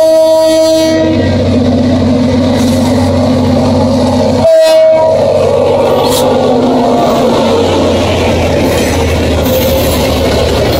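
A diesel locomotive engine rumbles deeply as it passes close by.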